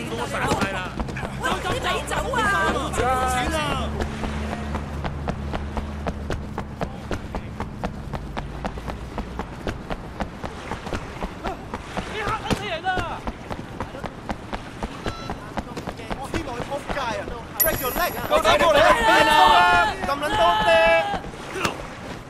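Men shout to each other.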